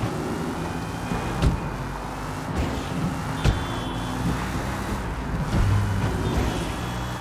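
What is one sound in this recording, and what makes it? A car engine rumbles and revs steadily.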